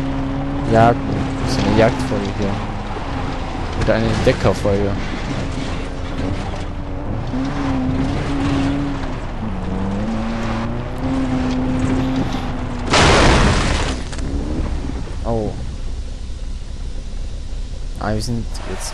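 A truck engine drones.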